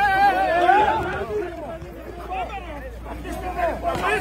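A crowd of men and women shout over one another.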